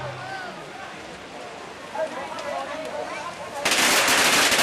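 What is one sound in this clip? A crowd of men shouts and chatters outdoors.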